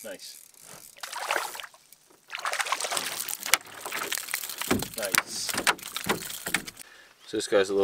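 A paddle splashes and swishes through calm water.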